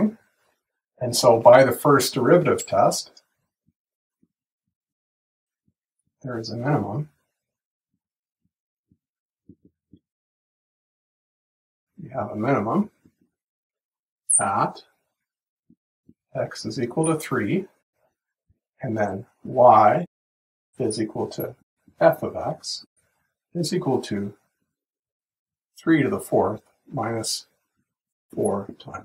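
A middle-aged man explains calmly and close to a microphone, with pauses.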